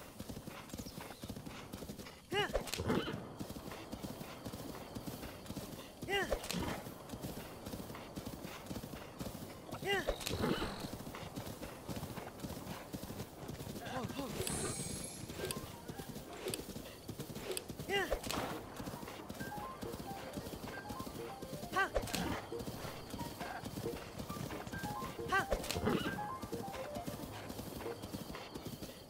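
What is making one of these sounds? Hooves thud steadily as a horse gallops over grass.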